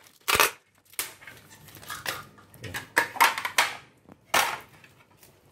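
Plastic parts knock and clatter against each other.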